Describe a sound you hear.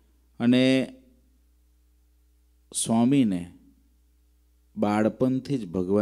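A man speaks calmly into a microphone in short phrases, close by.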